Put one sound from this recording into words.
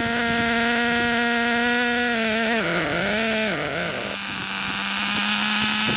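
A small model car engine buzzes loudly and revs.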